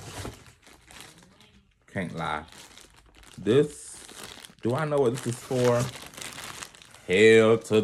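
Plastic packaging crinkles.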